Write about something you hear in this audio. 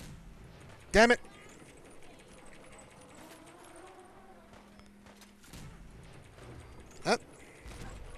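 A heavy gun fires loud single shots.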